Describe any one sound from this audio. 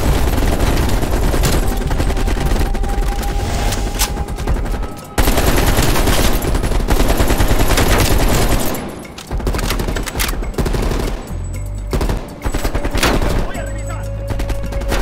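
Automatic rifles fire in rapid bursts close by.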